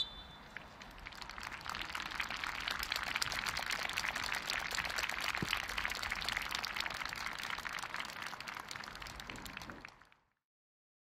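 A small crowd applauds outdoors.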